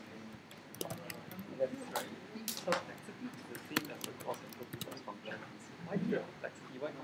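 Keys clack on a computer keyboard in quick bursts.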